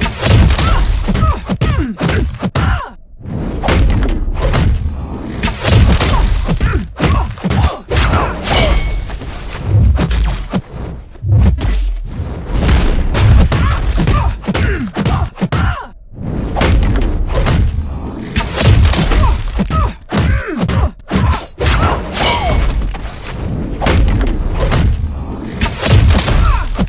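Arrows whoosh and zap as they are fired.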